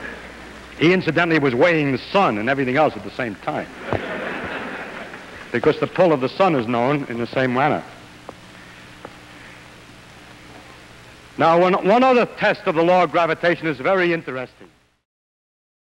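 A man lectures calmly into a microphone in an echoing hall.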